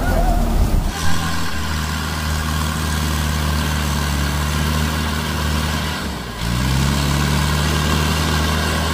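A loaded tractor's engine labours and revs up as it pulls away.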